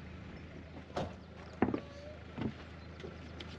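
Footsteps knock on a boat's hull.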